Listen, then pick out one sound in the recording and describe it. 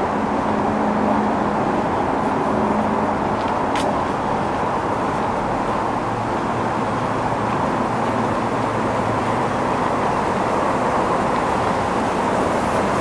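Wind blows steadily through trees outdoors.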